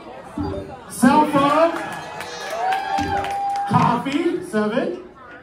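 A group of women cheer and shout excitedly.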